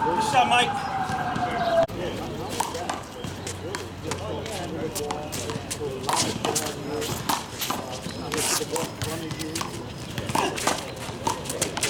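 Sneakers squeak and shuffle on a hard court.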